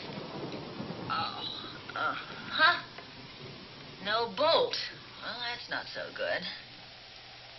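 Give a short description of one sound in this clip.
A woman speaks with strain and exasperation.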